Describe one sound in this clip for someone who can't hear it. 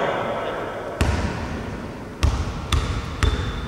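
A basketball bounces with echoing thumps.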